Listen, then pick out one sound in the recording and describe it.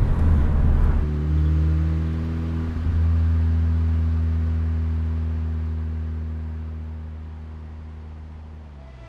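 A small car engine drones as the car drives away and fades into the distance.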